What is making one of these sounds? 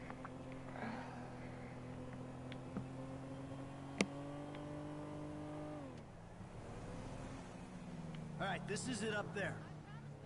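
A car engine hums under throttle, then eases off.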